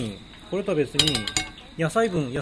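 A metal pot clinks on a camping stove.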